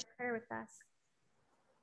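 An elderly woman speaks briefly over an online call.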